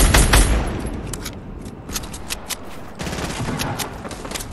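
Footsteps thud on wooden planks in a video game.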